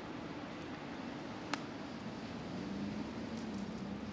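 A car's engine hums on a nearby bridge.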